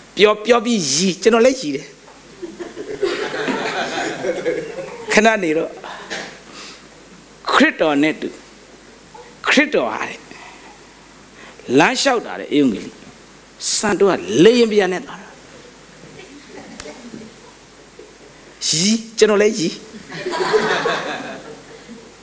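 A man preaches with animation through a microphone in an echoing hall, in short bursts with pauses.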